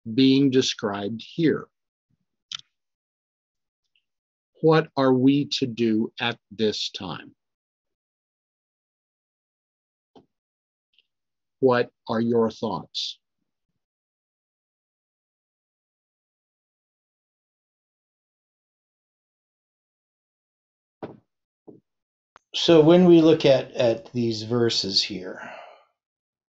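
An elderly man reads aloud slowly into a close microphone, with long pauses.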